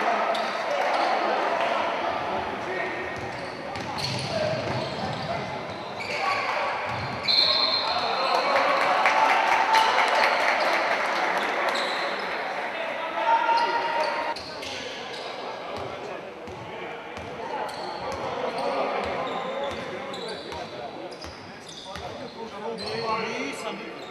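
A crowd cheers and murmurs in a large echoing hall.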